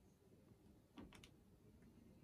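A canvas knocks lightly against a table.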